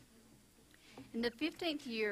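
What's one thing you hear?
A woman reads aloud clearly into a microphone.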